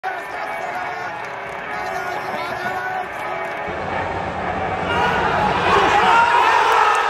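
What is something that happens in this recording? A large stadium crowd cheers and chants loudly, swelling to a roar.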